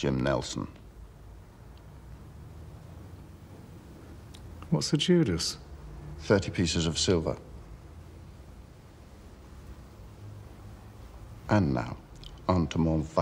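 A middle-aged man speaks calmly and smoothly, close by.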